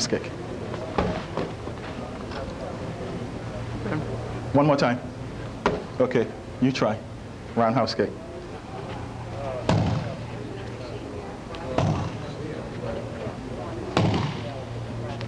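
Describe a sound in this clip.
Strikes thump against a hand-held target pad.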